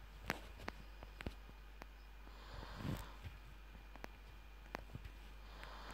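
Keys click softly as a phone keyboard is tapped.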